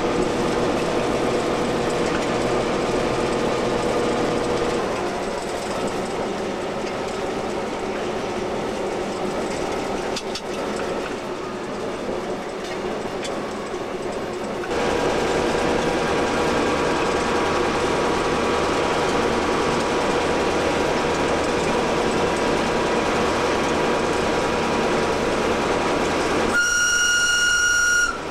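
A railcar engine drones steadily.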